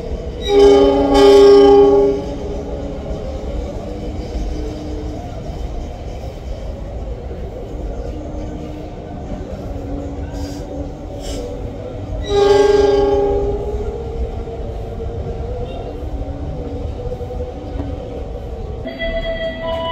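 A diesel locomotive engine rumbles low as it slowly approaches on the rails.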